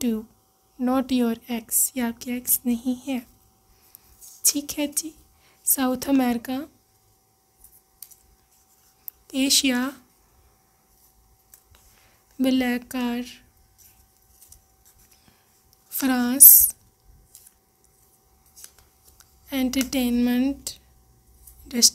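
Small folded paper notes rustle and crinkle as they are unfolded.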